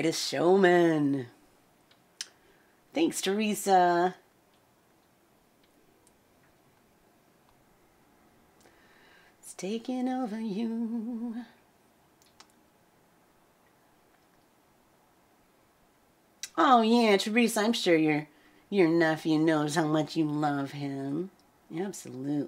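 A woman sings close to a microphone, in short phrases with pauses.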